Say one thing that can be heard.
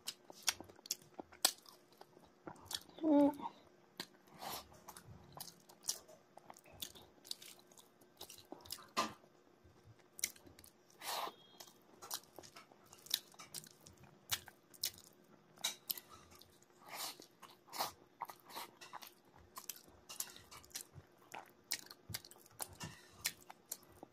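A young woman chews food noisily close to the microphone.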